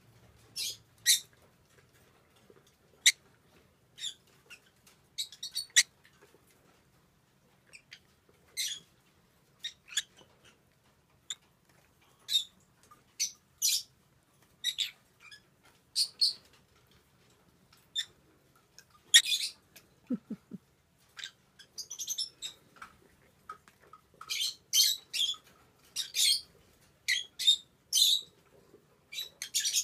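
A young peach-faced lovebird gives short high chirps.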